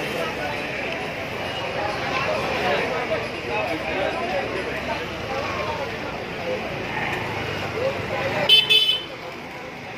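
A crowd of people chatters nearby on a busy street.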